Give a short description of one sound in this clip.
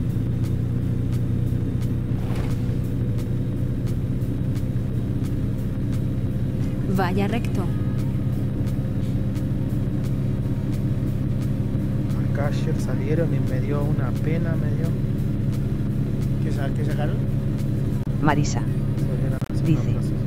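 A truck engine drones steadily while driving.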